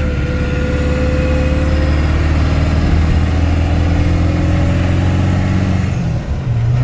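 A pickup truck engine hums steadily while driving.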